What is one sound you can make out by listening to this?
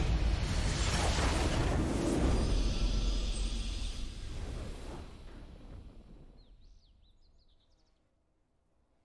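A loud explosion booms and rumbles, then slowly fades away.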